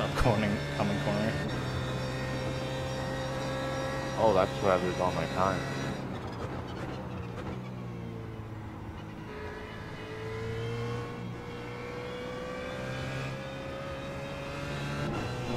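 A racing car engine drones steadily, dropping in pitch as it slows and then slowly rising again as it speeds up.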